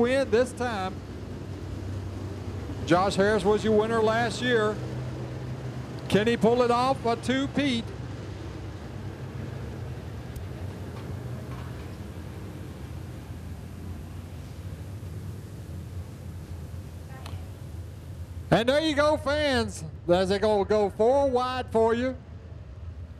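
Race car engines rev up loudly in bursts.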